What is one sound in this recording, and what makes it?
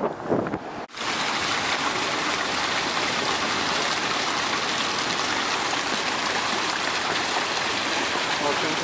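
Water splashes steadily from a fountain outdoors.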